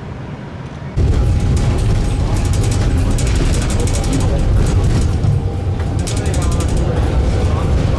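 Tram wheels rumble and clatter over rails up close.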